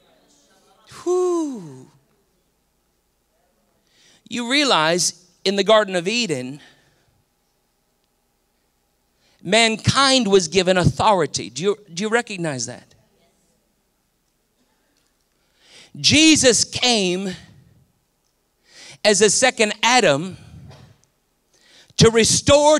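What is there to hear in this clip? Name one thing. A man speaks expressively through a microphone, with pauses between phrases.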